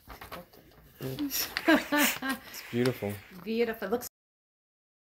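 A family talks and laughs together nearby.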